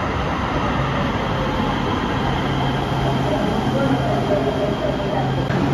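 A train rumbles past at speed with a loud steady roar.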